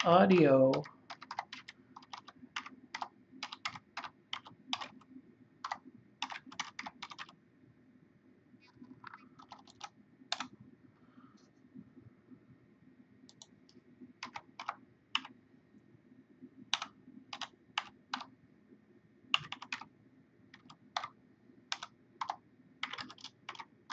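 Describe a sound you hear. Keyboard keys click in quick bursts of typing.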